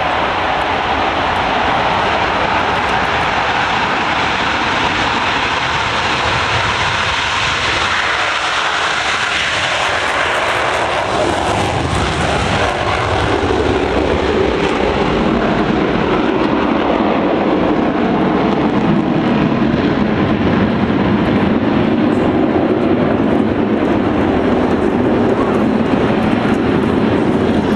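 Jet engines roar loudly overhead.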